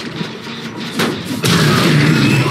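A heavy blow clangs against metal.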